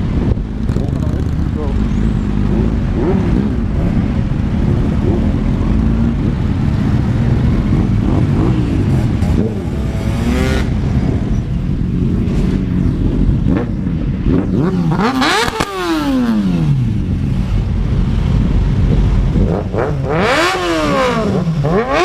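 A motorcycle engine rumbles and revs nearby.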